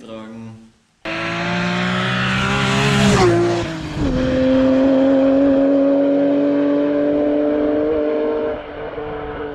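A car engine roars loudly as a car speeds past.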